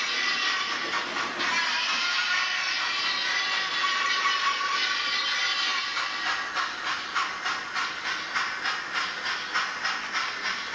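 A small model train whirs and clicks rhythmically along the track.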